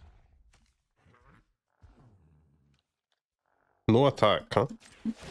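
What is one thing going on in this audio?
A young man speaks close into a microphone.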